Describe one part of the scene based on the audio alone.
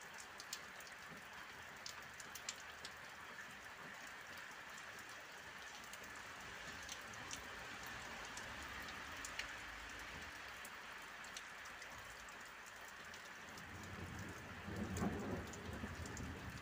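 Rain falls steadily outdoors, with drops ticking nearby.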